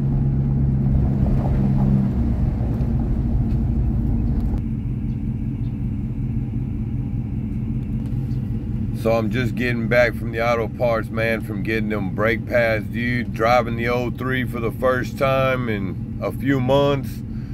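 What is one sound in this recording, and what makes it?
A truck engine idles with a low steady rumble.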